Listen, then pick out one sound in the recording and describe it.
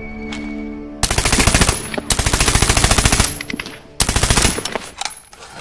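A rifle fires rapid bursts of shots close by.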